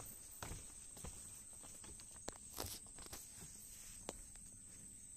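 Footsteps knock on wooden planks.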